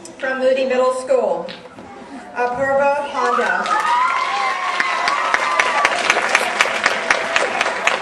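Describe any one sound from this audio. A woman speaks into a microphone, heard through loudspeakers in a large hall.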